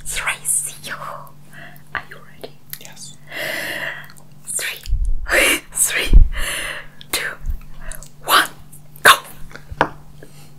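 A young man talks cheerfully close to a microphone.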